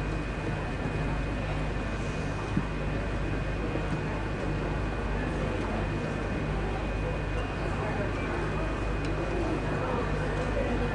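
A brass band plays outdoors.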